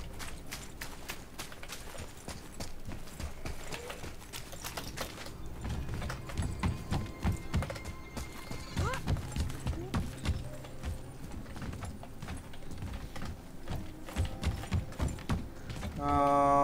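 Heavy footsteps thud quickly over stone and wooden boards.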